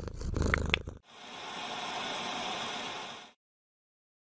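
A television hisses with loud static.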